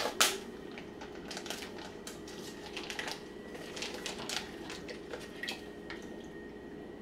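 A plastic bag crinkles and rustles as it is cut open.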